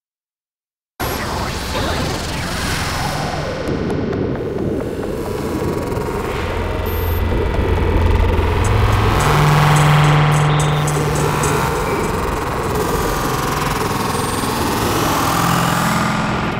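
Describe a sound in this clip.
Ambient electronic music with glitchy, noisy textures plays.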